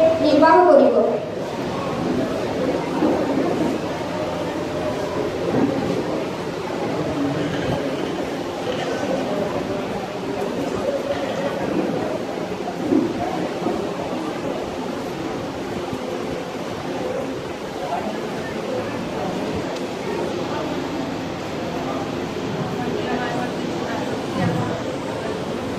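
A young person speaks into a microphone over loudspeakers in an echoing hall.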